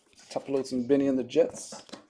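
Cardboard boxes knock and rustle as they are handled.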